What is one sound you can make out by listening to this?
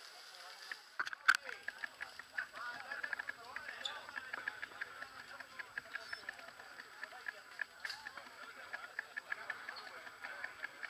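A bicycle freewheel ticks rapidly while coasting.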